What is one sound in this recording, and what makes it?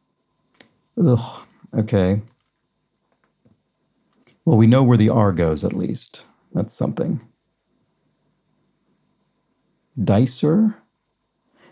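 A young man speaks calmly and thoughtfully into a close microphone, pausing between phrases.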